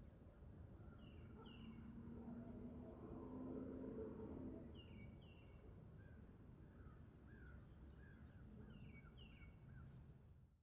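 A small bird sings short, repeated chirping notes close by.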